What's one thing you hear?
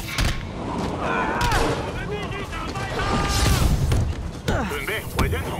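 Heavy punches land with hard thuds during a brawl.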